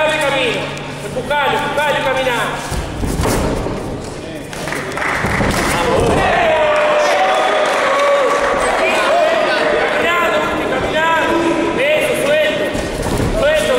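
A crowd of men shouts and cheers loudly in a large echoing hall.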